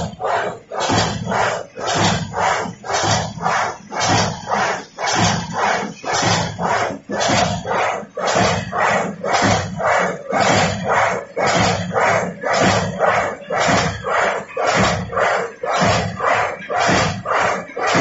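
A machine runs with a fast, steady rhythmic whooshing and clatter.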